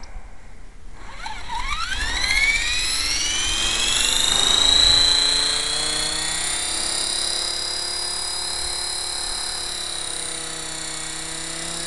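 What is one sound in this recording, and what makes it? A toy helicopter's electric motor whines, rising in pitch as its rotor spins up, then hums steadily.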